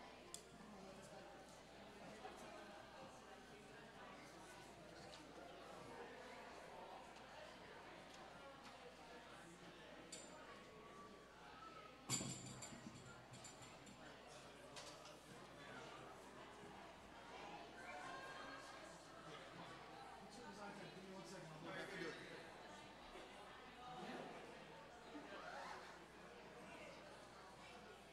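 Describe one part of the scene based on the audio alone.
A crowd of men and women chatter and greet each other nearby.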